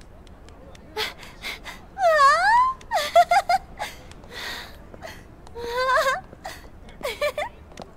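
A young woman speaks excitedly with a lively, rising voice.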